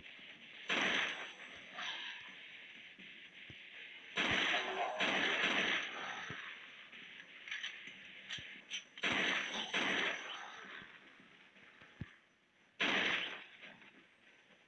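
Pistol shots crack one after another.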